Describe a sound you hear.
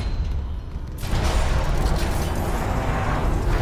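A heavy metal door slides open with a loud whoosh.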